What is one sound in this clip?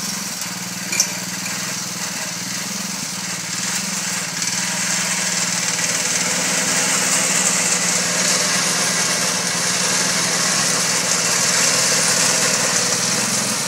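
A small mower engine runs steadily close by.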